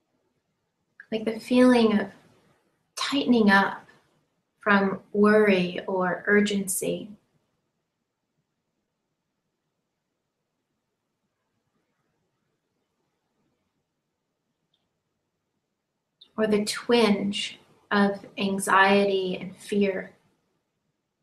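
A woman speaks calmly and softly, close to a microphone, with long pauses.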